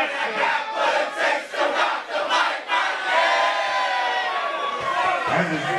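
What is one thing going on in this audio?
A crowd cheers and sings along loudly in a large echoing room.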